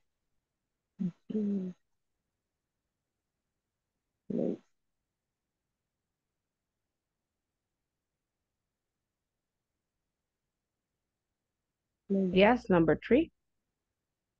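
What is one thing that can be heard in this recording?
A woman speaks in short bursts over an online call.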